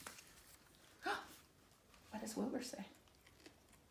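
A woman reads aloud calmly, close by.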